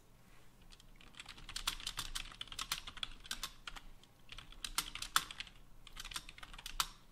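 Keys clack rapidly on a keyboard in bursts.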